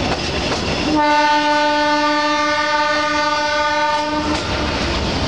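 A train horn blares steadily.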